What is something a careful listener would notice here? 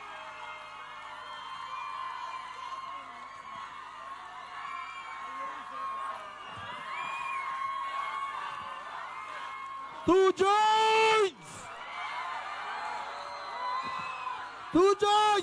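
A crowd cheers and chatters outdoors.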